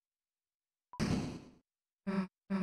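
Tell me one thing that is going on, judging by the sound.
A bright electronic chime rings out.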